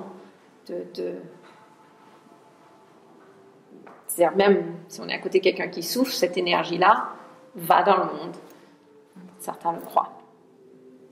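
A middle-aged woman speaks with animation, close by.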